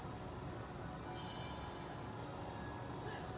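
A short electronic chime sounds from a game menu.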